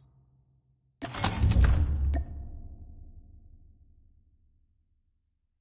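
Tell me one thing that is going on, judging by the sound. A deep whoosh rumbles as a game menu opens.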